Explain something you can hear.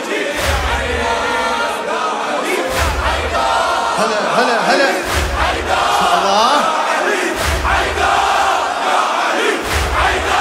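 A man chants loudly through a microphone in a large echoing hall.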